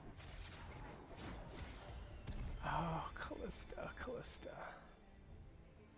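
Fantasy battle sound effects clash and burst with magic blasts.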